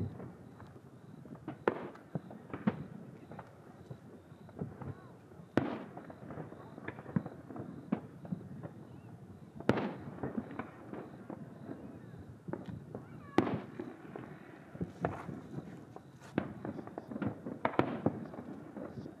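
Fireworks burst with booms and crackles in the distance.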